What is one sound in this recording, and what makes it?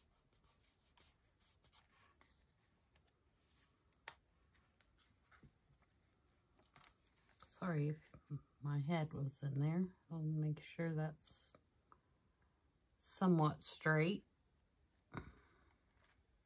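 Paper rustles softly as hands press and smooth it.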